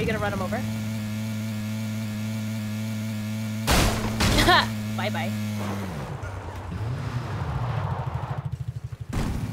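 A dune buggy engine drones.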